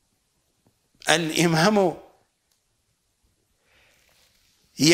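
A middle-aged man speaks calmly and clearly into a microphone, close by.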